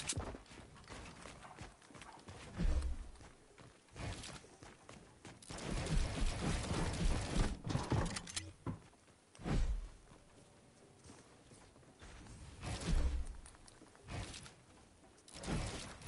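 Quick wooden knocks and clatters sound as walls are built.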